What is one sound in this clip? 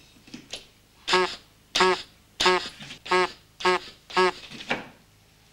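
A cuckoo clock chimes several times.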